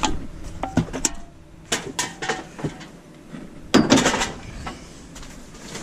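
Cardboard scrapes and thumps against the edge of a metal bin.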